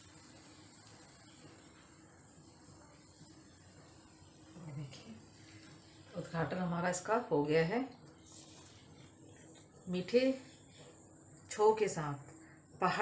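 Batter sizzles softly in a hot pan.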